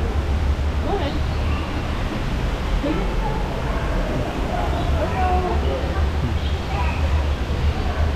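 A crowd of men and women chatter nearby in a large echoing space.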